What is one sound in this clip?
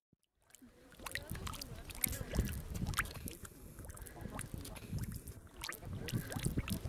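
Thick mud bubbles and plops softly close by.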